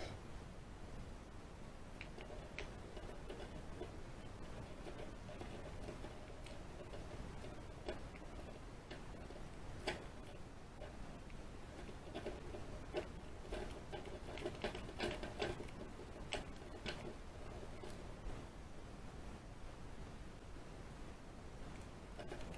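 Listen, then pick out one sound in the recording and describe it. Small metal picks scrape and click softly inside a lock.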